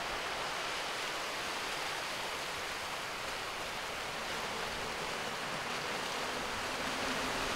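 Sea waves wash steadily and splash softly against rocks.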